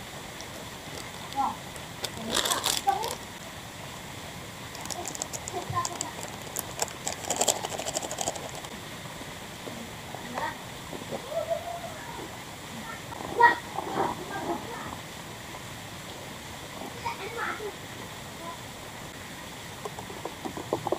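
A small wood fire crackles softly.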